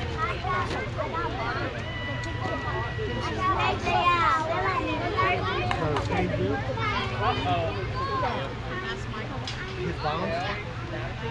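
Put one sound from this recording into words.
Children shout and cheer nearby outdoors.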